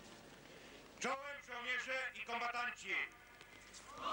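A middle-aged man speaks firmly into a microphone outdoors.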